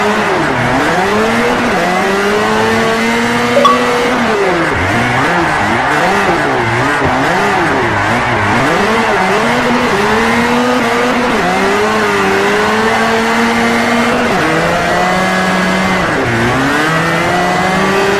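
Car tyres squeal on asphalt while sliding.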